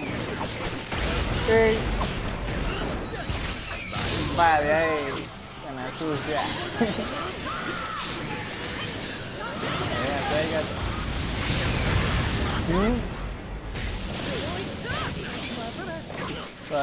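Explosions boom and crackle again and again.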